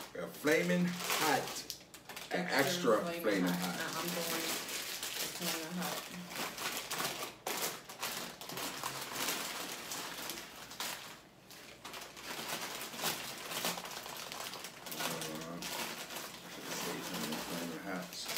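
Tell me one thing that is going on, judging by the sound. Crinkly snack bags rustle and crackle.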